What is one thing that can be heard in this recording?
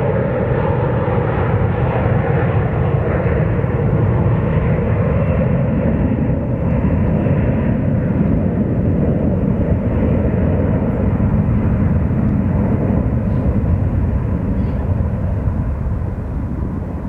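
A jet airliner roars loudly as it speeds down the runway for takeoff.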